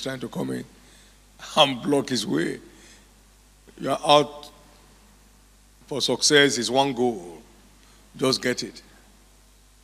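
A middle-aged man speaks into a microphone in bursts, heard through loudspeakers in a large echoing hall.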